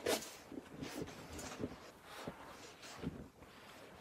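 A shovel crunches and scrapes into deep snow.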